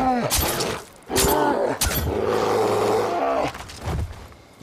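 A bear growls and roars up close.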